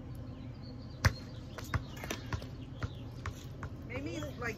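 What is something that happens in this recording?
A rubber ball bounces on pavement.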